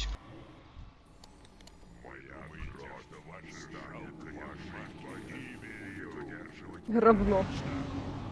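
Weapons clash and spells burst in a fight.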